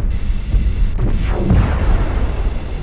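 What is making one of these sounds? A loud blast roars and whooshes nearby.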